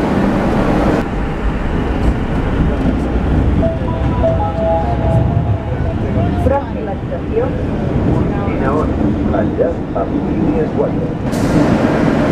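A train rumbles steadily while moving through a tunnel.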